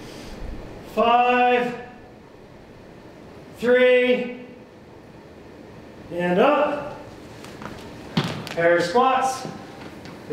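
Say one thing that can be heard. A man calls out loudly and briefly, close by, several times.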